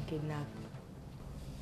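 A boy speaks briefly, close by.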